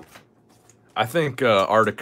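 Playing cards rustle and slide against each other in hands.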